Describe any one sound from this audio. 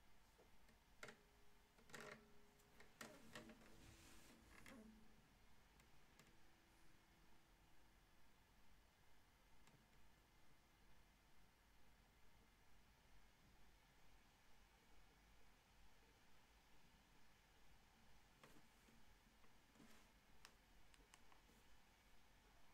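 An acoustic guitar is strummed and plucked softly, close by.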